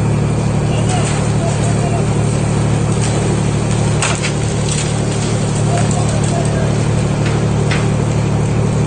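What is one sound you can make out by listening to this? Metal clanks as a crane lifts a tractor.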